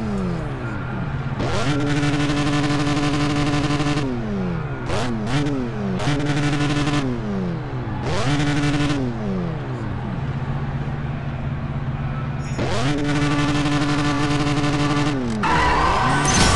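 A car engine revs up and down repeatedly while idling.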